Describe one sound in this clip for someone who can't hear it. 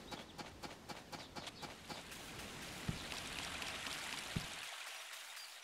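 A stream rushes and splashes nearby.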